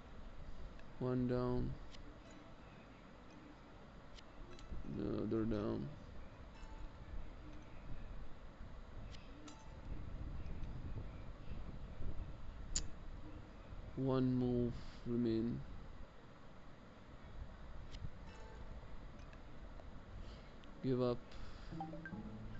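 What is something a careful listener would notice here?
Short musical chimes ring out as game pieces are matched.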